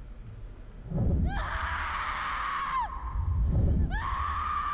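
A young woman screams in anguish.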